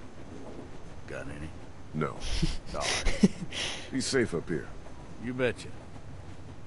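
An elderly man speaks in a weary, gravelly voice.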